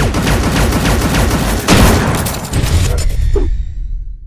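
Metal clangs and crashes loudly as machines fight.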